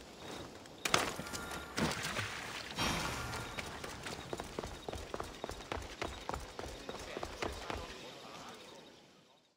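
Footsteps patter quickly across stone.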